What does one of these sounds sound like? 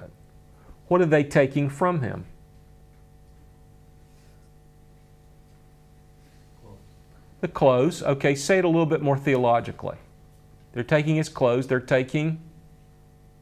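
A middle-aged man speaks with emphasis through a close microphone, in short bursts with pauses.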